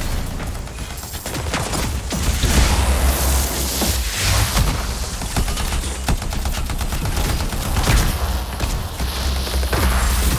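Electric energy crackles and buzzes.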